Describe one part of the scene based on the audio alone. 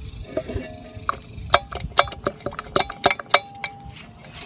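Metal parts clink and scrape as they are handled.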